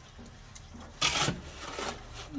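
A pickaxe strikes a concrete block with a sharp thud.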